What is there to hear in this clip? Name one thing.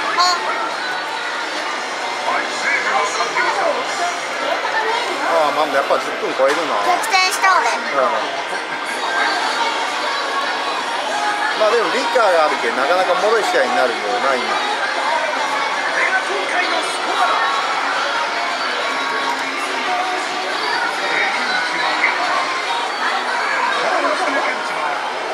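An arcade machine plays upbeat music through its loudspeaker.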